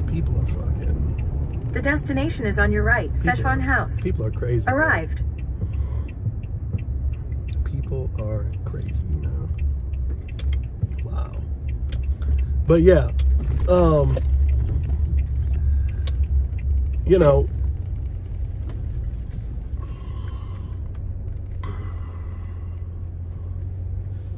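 A car engine hums low and steady as the car drives.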